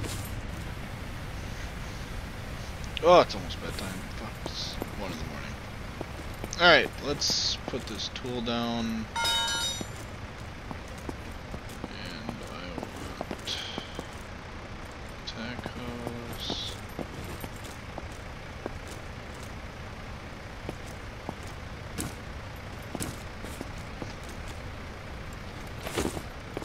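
Boots thud in slow footsteps on paving.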